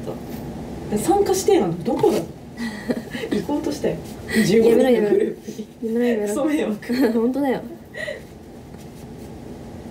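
Paper rustles in a young woman's hands.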